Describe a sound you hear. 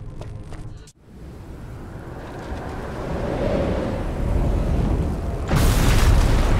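A low rumble swells as fiery streaks roar overhead.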